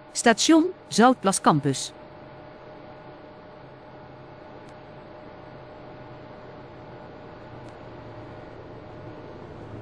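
A tram hums and rolls away along the track.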